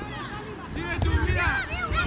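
A football is kicked.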